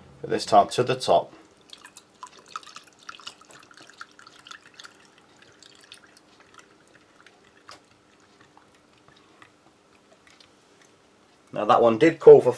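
A spoon stirs and clinks in a glass.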